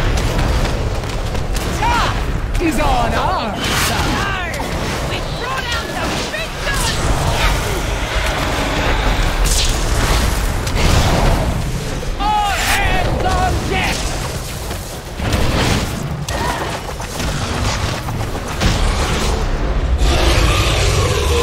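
Swords clash and spells burst in a fierce fight.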